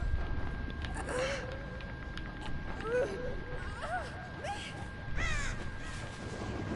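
Crows caw nearby.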